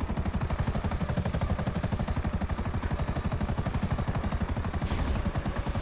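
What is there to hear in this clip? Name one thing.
A helicopter's rotor chops rapidly and steadily overhead.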